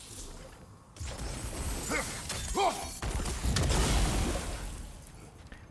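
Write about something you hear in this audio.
A magic blast crackles and bursts with a loud rumbling explosion.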